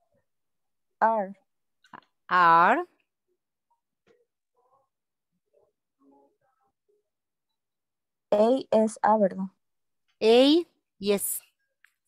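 A woman speaks slowly and clearly over an online call, drawing out her words.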